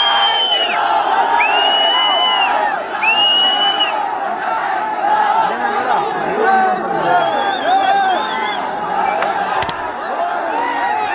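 A large crowd of young men cheers and shouts loudly outdoors.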